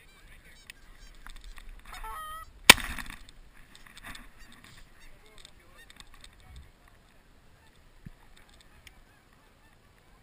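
Geese honk overhead.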